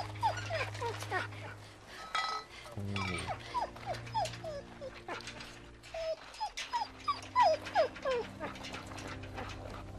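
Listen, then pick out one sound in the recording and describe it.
A wounded dog whimpers softly.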